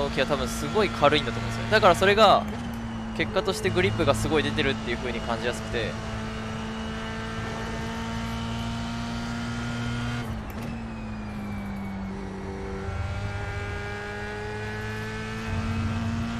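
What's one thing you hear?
A racing car engine drones steadily and drops in pitch as it shifts gear.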